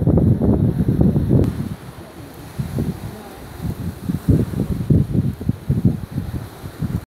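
Wind gusts roar across the open sea.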